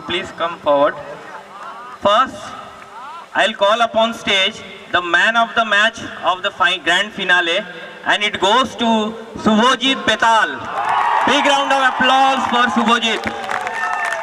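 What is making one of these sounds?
A man announces with animation into a microphone, heard through loudspeakers outdoors.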